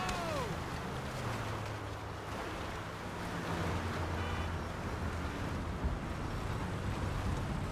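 Car engines hum steadily as cars drive past on a road.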